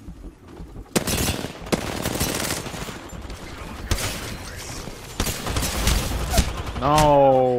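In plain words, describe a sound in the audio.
Automatic guns fire in rapid, loud bursts.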